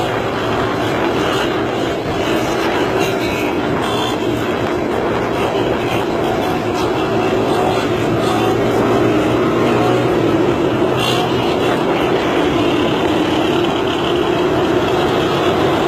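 Wind rushes past, as if heard from a moving vehicle.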